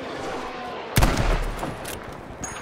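An explosion booms in the distance.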